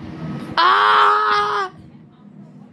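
A boy shouts loudly, close to the microphone.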